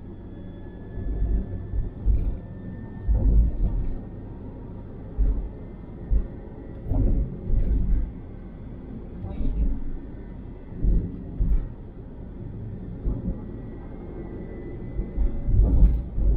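Tyres roll over a smooth road.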